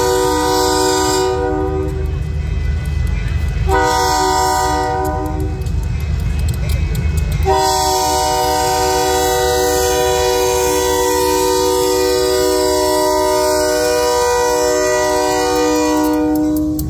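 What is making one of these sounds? A train horn blares loudly in long blasts.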